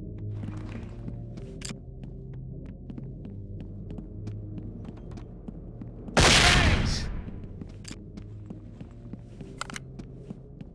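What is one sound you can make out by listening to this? Footsteps thud and scuff on hard floors at a steady walking pace.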